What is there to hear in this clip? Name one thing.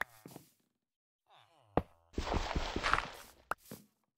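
Rails click down onto the ground as they are placed.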